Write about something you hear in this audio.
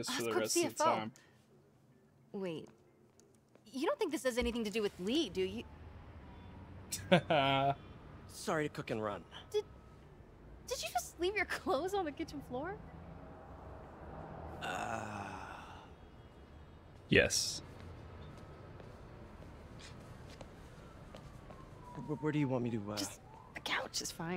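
A young woman speaks with surprise.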